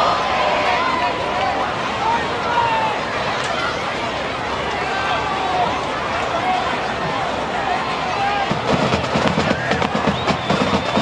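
A crowd cheers and chatters outdoors in the distance.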